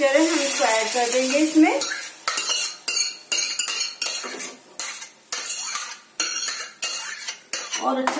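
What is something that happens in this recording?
Liquid pours from a pot into a pan.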